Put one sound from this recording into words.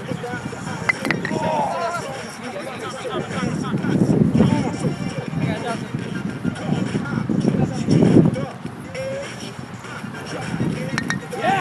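Several men talk and call out outdoors.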